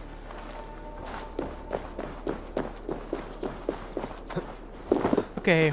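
Footsteps run quickly over stone and dirt.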